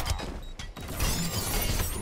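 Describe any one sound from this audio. A burst of energy whooshes and crackles.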